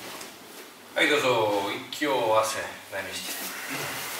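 A middle-aged man speaks nearby.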